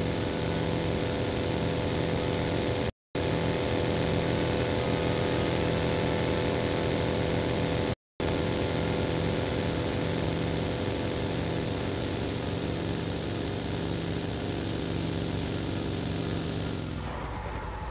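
A buggy engine drones steadily as it drives over rough ground.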